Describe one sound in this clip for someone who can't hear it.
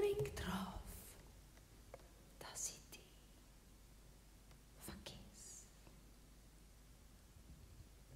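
A woman speaks softly and haltingly into a microphone.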